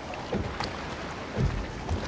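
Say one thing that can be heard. A small boat glides through water.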